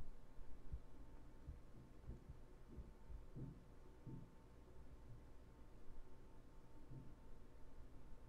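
A young man speaks quietly and calmly close to a microphone.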